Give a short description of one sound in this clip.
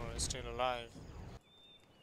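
Gunfire and explosions rumble in a battle.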